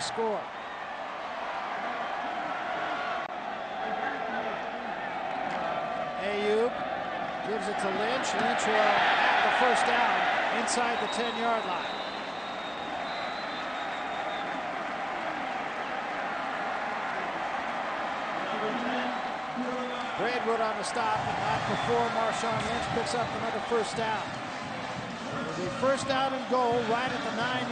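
A large stadium crowd roars and swells into loud cheering.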